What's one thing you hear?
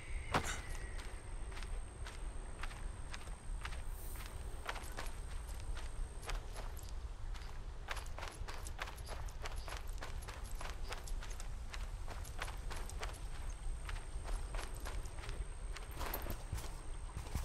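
Footsteps crunch on grass and stones.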